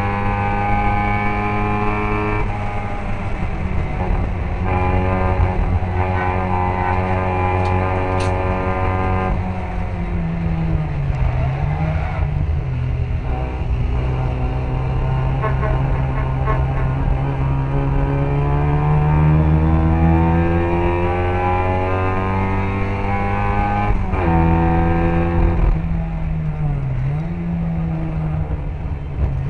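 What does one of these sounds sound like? Other racing car engines buzz nearby.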